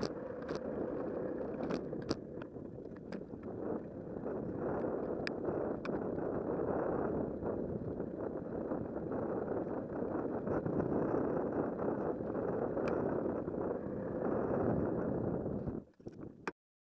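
Wind rushes loudly and steadily past while riding outdoors.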